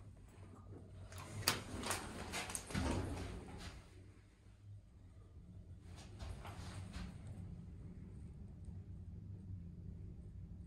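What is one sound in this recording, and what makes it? A lift hums steadily as it moves.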